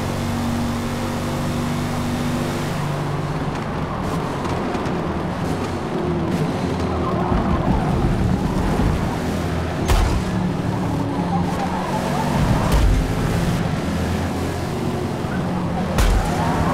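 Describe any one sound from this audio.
A car engine roars loudly, rising and falling as gears change.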